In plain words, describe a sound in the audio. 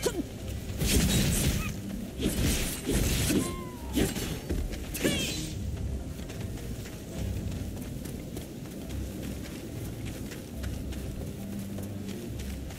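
Wind howls steadily in a snowstorm.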